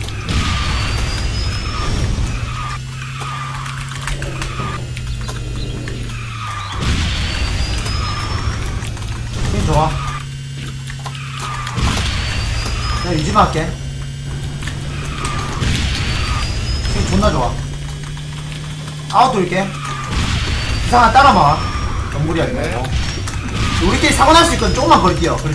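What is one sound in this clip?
Game music plays steadily with a looping beat.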